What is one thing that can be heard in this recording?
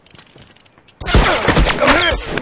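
Heavy blows land in a violent scuffle.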